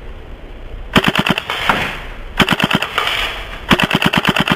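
An airsoft gun fires rapid bursts.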